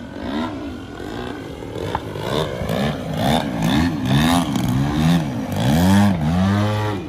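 A small propeller plane's engine buzzes overhead, its pitch rising and falling as it swoops and turns.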